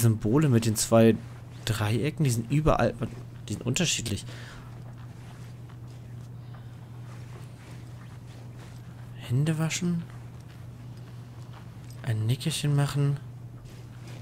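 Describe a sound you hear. A woman speaks quietly in short phrases.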